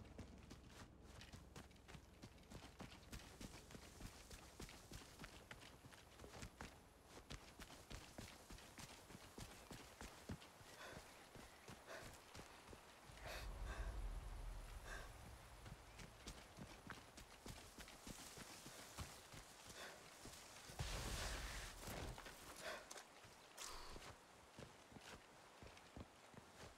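Footsteps crunch through grass and dirt.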